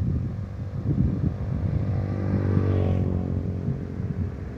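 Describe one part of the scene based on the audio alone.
A tricycle engine putters past.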